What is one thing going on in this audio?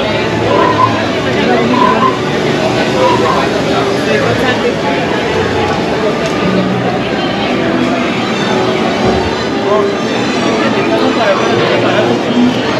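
A crowd of men and women chatters all around, outdoors.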